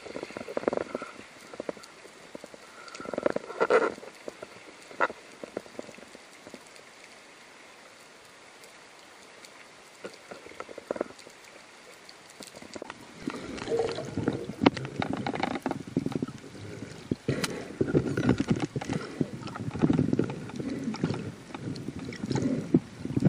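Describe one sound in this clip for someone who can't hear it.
Water swirls and gurgles around a swimmer underwater, louder near the surface.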